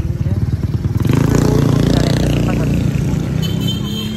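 A motorcycle engine roars past nearby.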